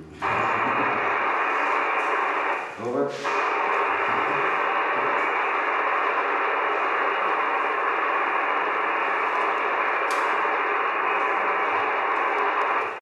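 Static hisses steadily from a handheld radio.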